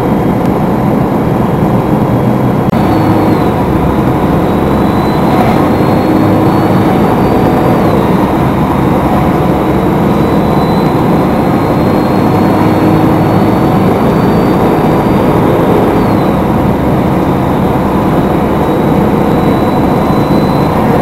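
Tyres roll over asphalt with a steady rumble.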